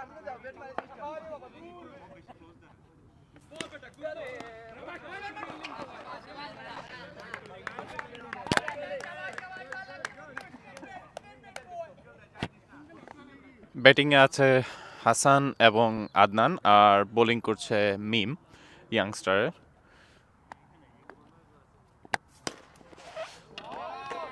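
Hockey sticks clack against a ball on pavement.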